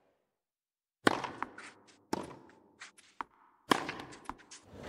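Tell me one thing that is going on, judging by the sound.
A tennis ball is struck sharply with a racket, several times.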